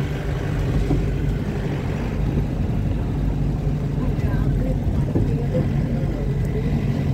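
A vehicle's engine rumbles steadily from inside as it drives along.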